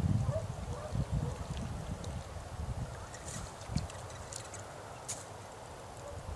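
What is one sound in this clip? A fish splashes and thrashes at the water's surface.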